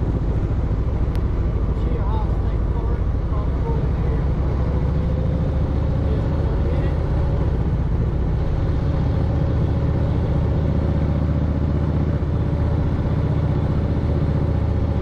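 A motorcycle engine rumbles steadily up close.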